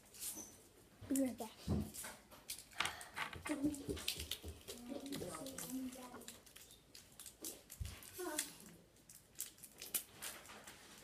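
A young girl talks close to the microphone.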